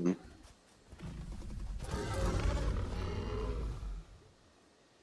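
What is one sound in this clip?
A large beast growls up close.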